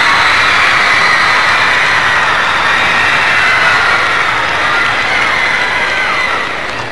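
A large crowd screams and shrieks loudly in a big echoing hall.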